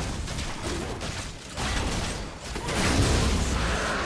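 A large dragon roars as it is slain.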